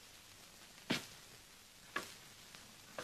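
A gun fires with sharp cracks.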